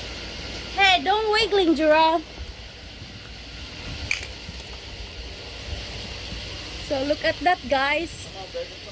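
Ground fireworks hiss and crackle steadily.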